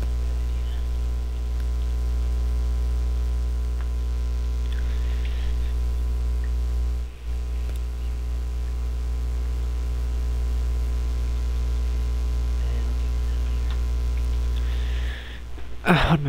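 A low steady hum drones from a game.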